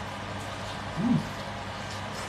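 A young man hums with pleasure.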